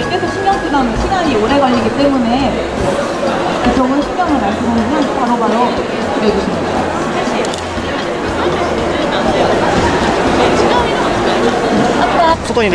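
A young woman speaks with animation through a microphone over a loudspeaker.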